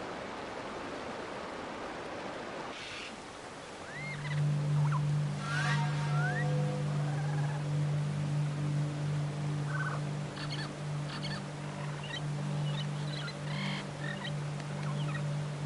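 A waterfall rushes steadily nearby.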